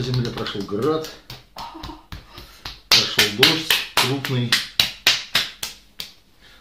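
A man's hands pat and slap rhythmically on bare skin.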